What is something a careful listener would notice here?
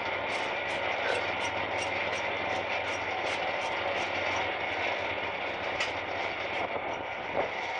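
Wheels click rhythmically over the rail joints.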